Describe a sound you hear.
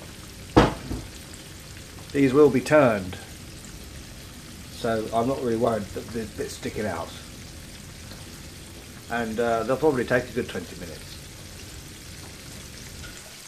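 Food sizzles and bubbles gently in a frying pan.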